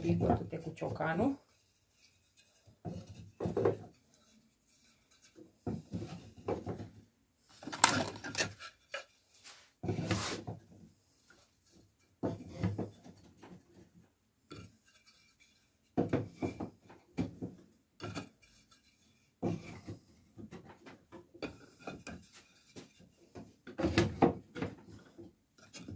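Wooden sticks clatter and knock together as they are stacked by hand.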